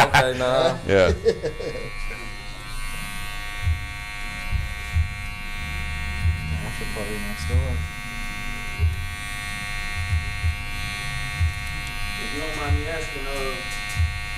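An electric clipper buzzes steadily.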